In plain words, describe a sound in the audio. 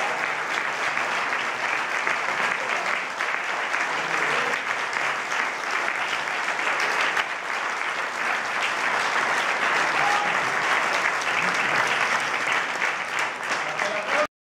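An audience applauds loudly and steadily in a hall.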